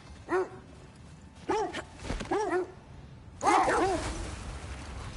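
Dogs yelp and bark in short bursts.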